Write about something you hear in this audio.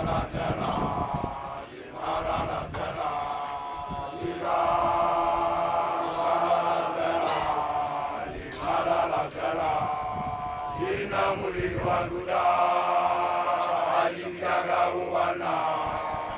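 A large group of people sings together in chorus outdoors.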